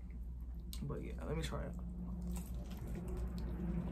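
A woman bites into a crunchy sandwich.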